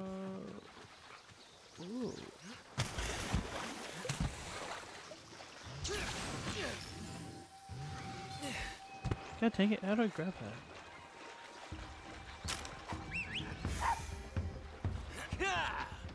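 Water splashes under running feet.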